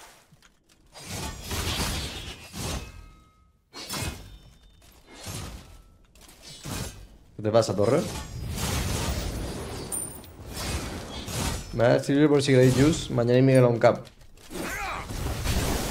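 Fiery blasts and magic effects burst in a game's combat.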